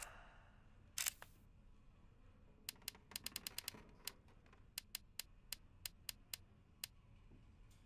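Short soft clicks tick one after another as pages are flipped.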